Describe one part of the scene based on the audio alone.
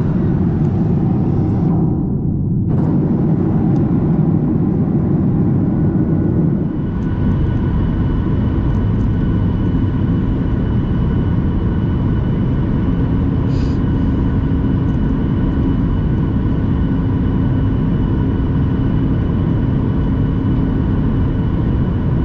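Jet engines roar steadily, heard from inside an airliner cabin.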